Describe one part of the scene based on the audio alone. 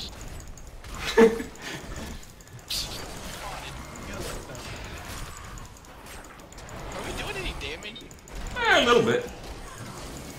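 A man laughs close to a microphone.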